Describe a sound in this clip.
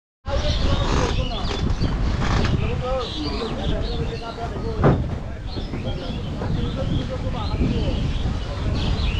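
Strong wind rumbles and buffets the microphone outdoors.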